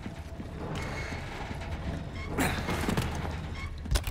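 A boot kicks a wooden crate with a heavy thud.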